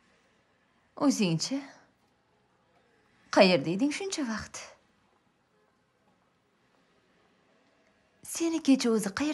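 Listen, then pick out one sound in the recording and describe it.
A young woman speaks nearby in short bursts.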